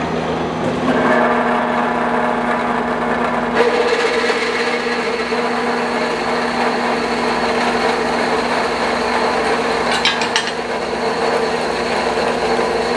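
A band saw blade grinds through metal with a steady whine.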